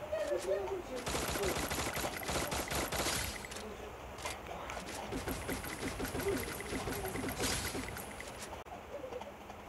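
Rapid gunfire rattles in two loud bursts.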